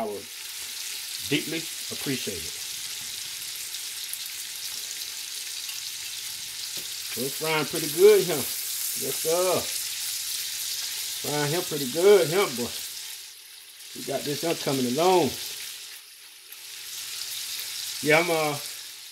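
Food sizzles steadily in a hot pot.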